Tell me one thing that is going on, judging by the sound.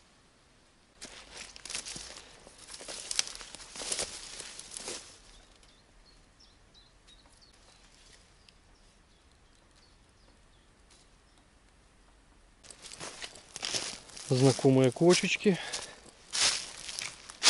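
Footsteps rustle and crunch through dry undergrowth.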